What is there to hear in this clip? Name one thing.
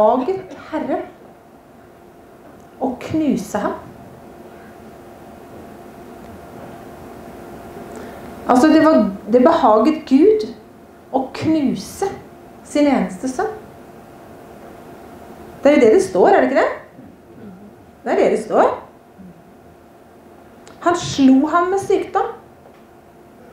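A woman speaks calmly into a microphone, with pauses.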